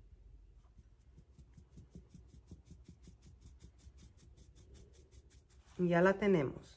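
A metal sieve is tapped rapidly, sifting flour.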